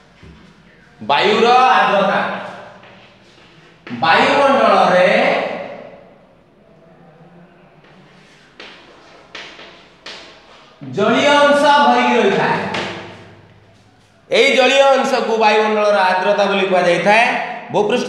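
A man speaks loudly and clearly.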